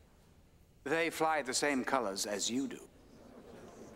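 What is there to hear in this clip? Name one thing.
An older man speaks firmly and clearly, close by.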